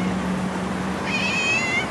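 A domestic cat meows.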